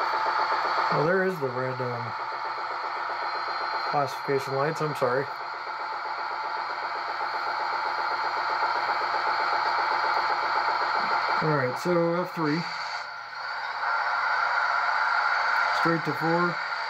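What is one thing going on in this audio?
A model train's horn sounds in short blasts several times.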